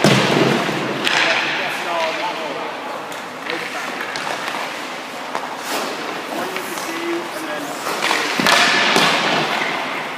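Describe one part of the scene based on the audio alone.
Ice skates scrape and carve across the ice in a large echoing rink.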